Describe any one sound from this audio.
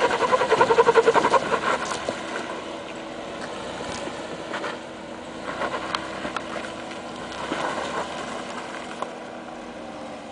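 An off-road vehicle's engine revs and rumbles as it climbs over rocks.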